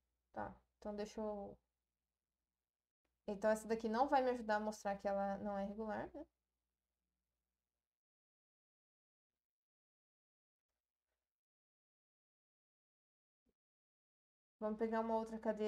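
A woman speaks calmly and closely through a microphone, in short bursts with pauses.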